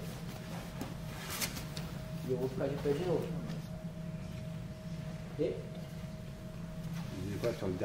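Bodies shuffle and slide on a mat.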